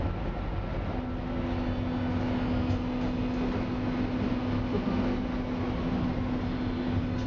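A train's motor hums with a steady tone.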